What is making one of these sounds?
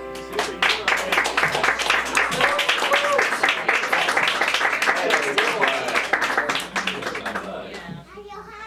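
An audience claps loudly.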